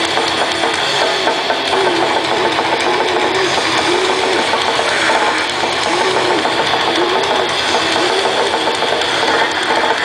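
A bass guitar rumbles along with the guitars.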